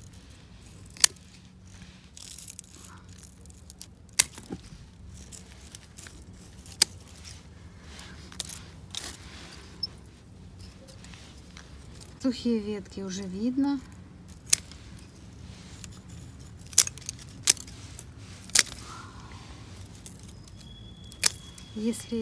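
Pruning shears snip through woody stems with sharp clicks.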